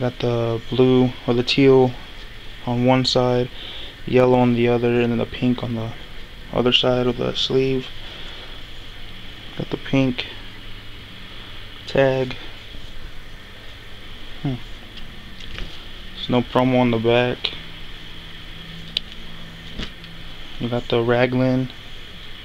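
Cloth rustles softly as a hand handles clothing.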